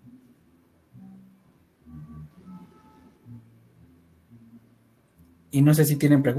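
A man speaks quietly in the background of an online call.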